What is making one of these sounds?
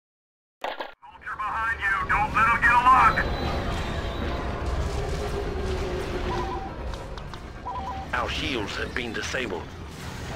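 A spaceship engine roars and hums steadily.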